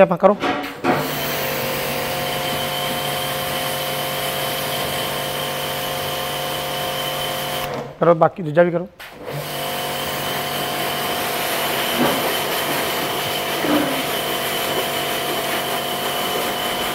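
A jet of water sprays hard onto the ground.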